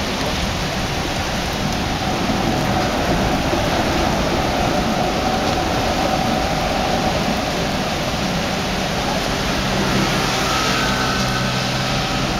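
A tram rumbles past on its rails.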